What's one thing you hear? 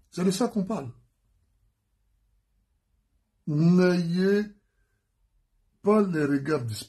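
A man speaks calmly and close to the microphone, in short phrases with pauses.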